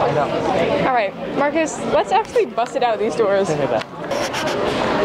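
A crowd of students chatter loudly in an echoing hallway.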